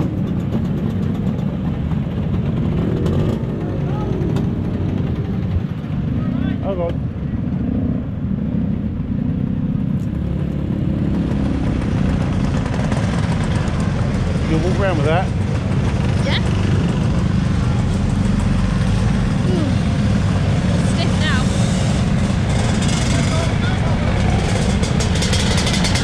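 A scooter engine idles and rumbles close by.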